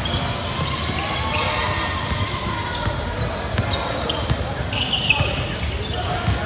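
A crowd of children and adults chatters in the background.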